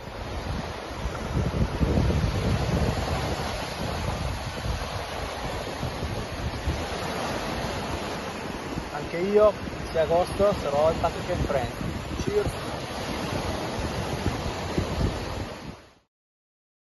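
Waves wash onto a shore.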